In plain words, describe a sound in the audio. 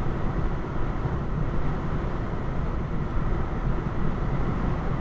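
A car drives steadily along a road, with a low rumble of engine and tyres heard from inside.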